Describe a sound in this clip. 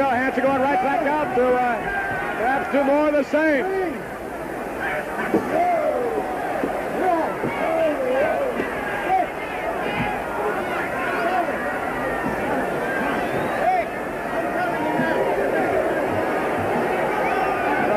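A large crowd shouts and jeers in a big echoing hall.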